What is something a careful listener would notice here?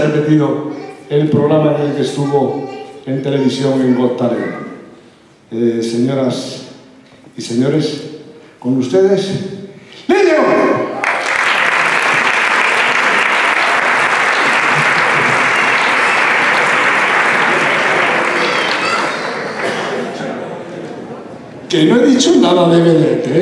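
A middle-aged man speaks with animation through a microphone and loudspeakers in a large hall.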